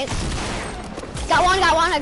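A rocket whooshes past and explodes.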